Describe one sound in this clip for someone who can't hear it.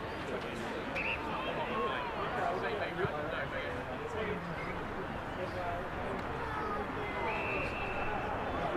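An umpire's whistle blows in short sharp blasts.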